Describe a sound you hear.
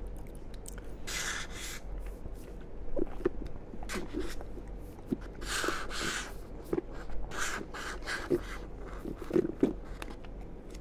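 A man sips loudly through a straw, close to a microphone.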